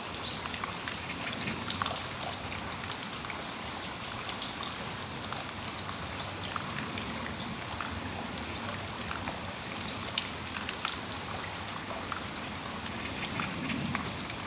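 Raindrops patter and tap on a metal roof.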